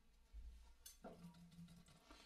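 A French horn plays a low sustained note.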